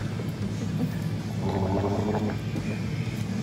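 A man gargles loudly.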